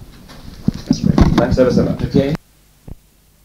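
An older man speaks calmly in a recorded interview.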